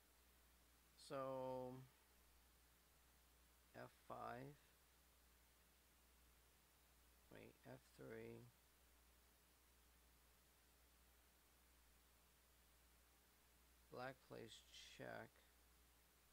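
A man speaks calmly into a close microphone in short phrases.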